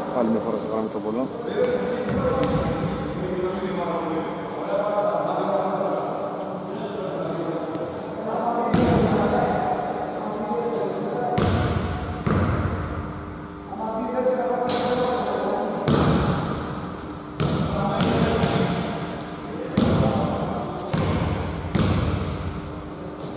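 Men call out to one another across an echoing hall.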